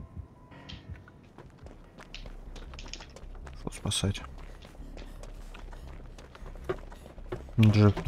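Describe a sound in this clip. Footsteps run over gravel.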